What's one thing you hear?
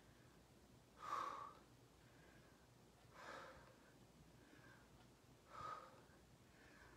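A young woman exhales sharply with effort close by.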